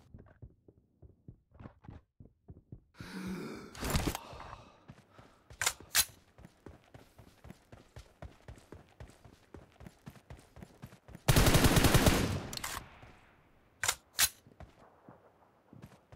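Footsteps run over the ground.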